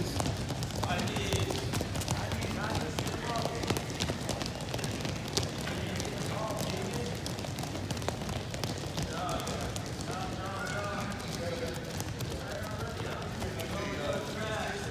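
Many children's feet patter as they jog across a gym mat.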